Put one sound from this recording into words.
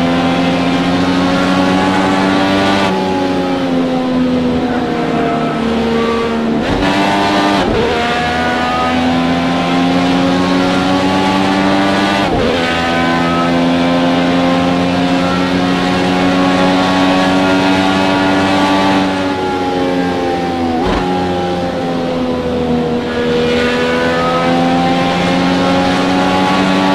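A racing car engine whines loudly at high revs, dipping and rising as it shifts gears.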